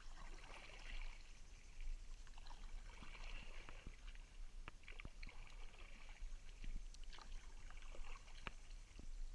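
A paddle splashes and dips into water.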